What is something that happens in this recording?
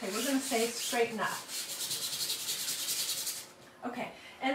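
Hands rub briskly over a sheet of paper.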